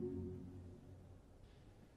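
A large choir's final chord fades away in an echoing hall.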